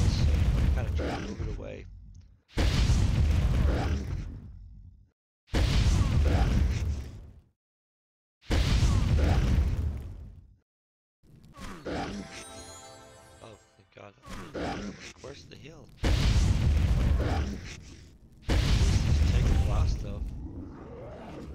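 Heavy booming blasts of a huge creature's attacks go off again and again.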